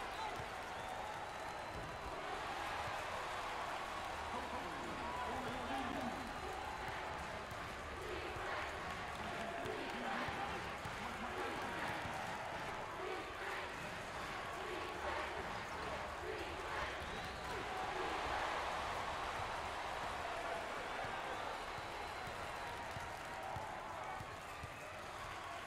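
A crowd in a large arena murmurs and cheers steadily.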